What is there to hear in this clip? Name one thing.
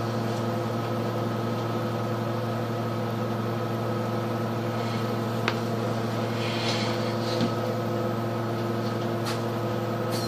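A bus engine idles with a steady low hum from inside the bus.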